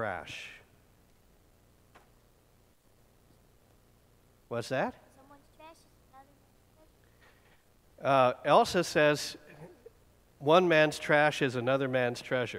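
A man talks calmly to children.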